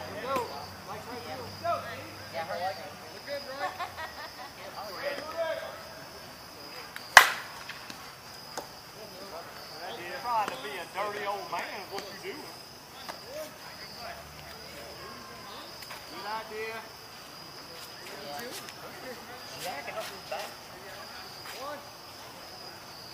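Men call out and chatter across an open field.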